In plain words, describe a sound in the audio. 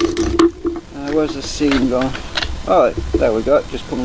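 A metal lid scrapes and pops off a tin.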